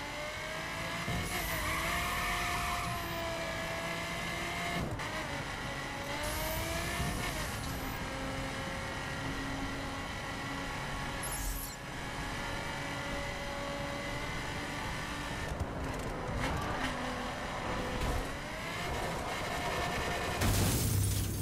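A sports car engine revs high and shifts gears as it accelerates.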